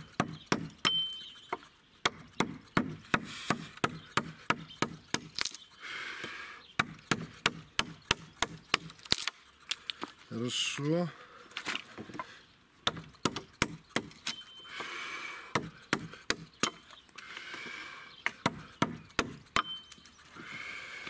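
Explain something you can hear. A mallet strikes a chisel in quick, sharp knocks.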